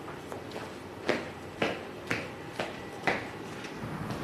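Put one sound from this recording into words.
High heels click on a hard floor at a quick, even pace.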